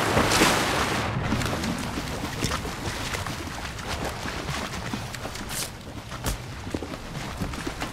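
A body splashes through water.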